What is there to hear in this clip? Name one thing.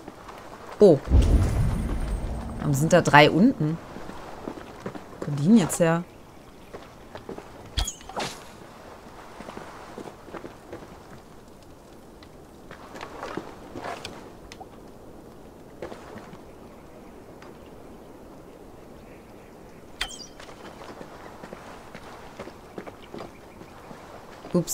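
Footsteps crunch softly on loose rock.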